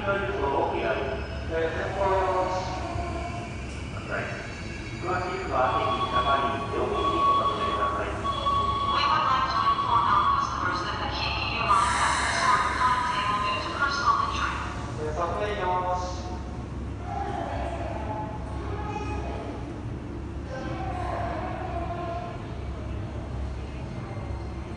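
A stopped train hums steadily in a large echoing station.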